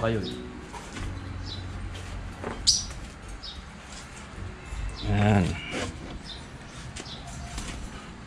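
Bags rustle as a man rummages through a pile.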